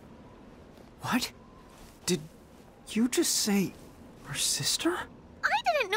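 A young man asks in astonishment.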